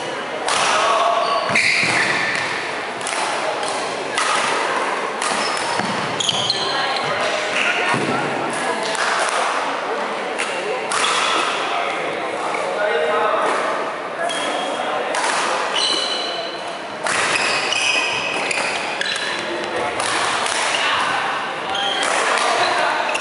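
Rackets smack shuttlecocks again and again in a large echoing hall.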